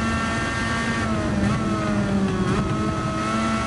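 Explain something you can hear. A racing car engine drops in pitch as the car brakes into a corner.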